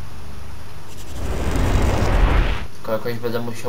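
A magical whoosh swells and then fades away.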